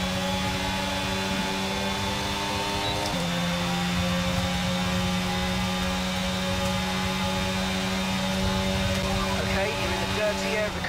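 A racing car engine whines at high revs, shifting up a gear once and holding a steady pitch.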